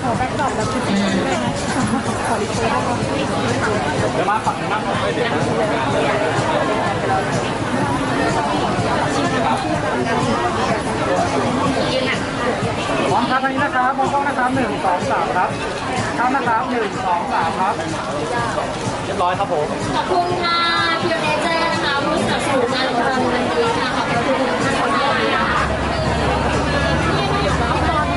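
A crowd of young people chatters loudly all around.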